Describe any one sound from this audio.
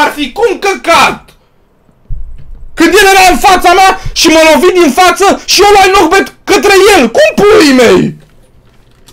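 A young man shouts excitedly into a microphone, close by.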